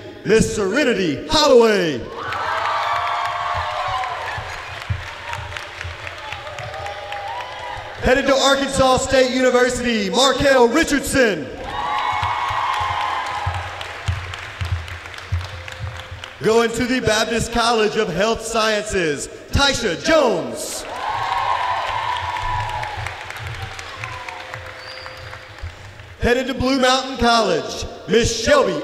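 A crowd of students claps and cheers in a large echoing gym.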